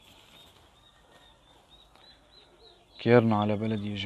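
Small chicks cheep softly nearby.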